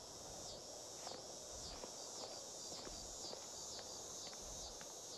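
A horse's hooves clop slowly on stone.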